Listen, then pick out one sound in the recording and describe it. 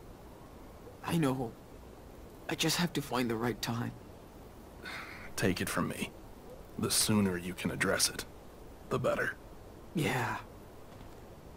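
A young man answers softly.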